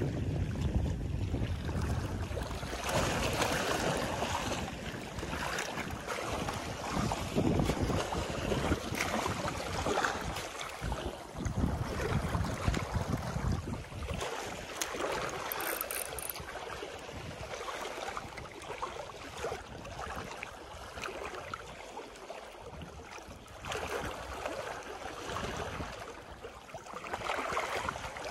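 Wind blows outdoors, rushing and buffeting.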